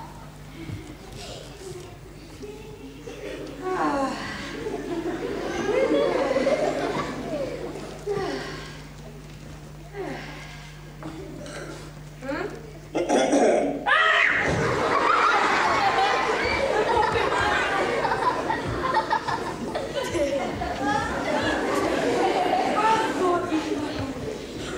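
A man speaks animatedly on a stage, heard through a loudspeaker in a hall.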